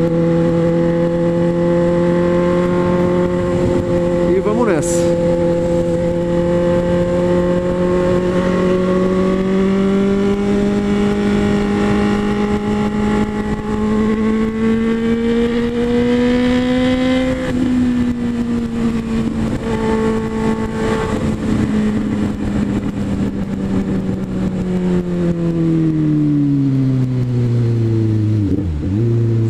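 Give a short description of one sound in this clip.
A motorcycle engine hums steadily, rising slowly in pitch and then dropping as it slows down.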